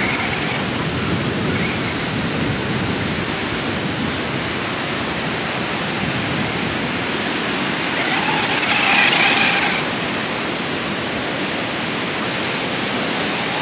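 Waves wash onto a shore.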